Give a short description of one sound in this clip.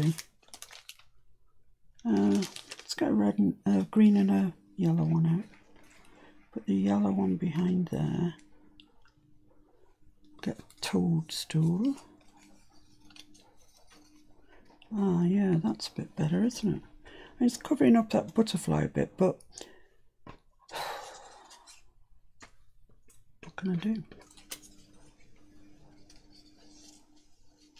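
Paper and dry leaves rustle softly under hands.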